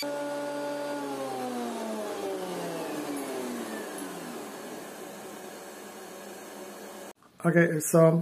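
An electric planer whirs and slowly winds down to a stop.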